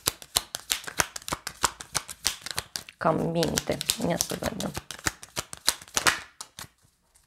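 Playing cards are shuffled with quick, rapid riffling flicks.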